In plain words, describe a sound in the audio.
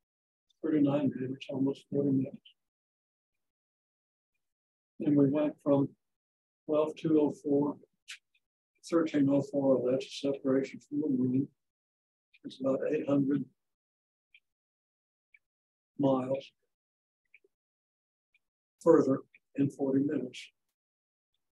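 An elderly man lectures calmly in bursts, with pauses between phrases.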